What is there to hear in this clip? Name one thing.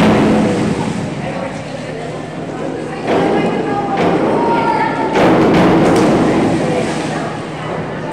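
A diver splashes into the water.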